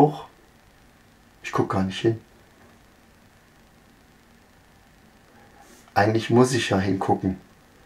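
A middle-aged man speaks calmly and close to a microphone, with pauses.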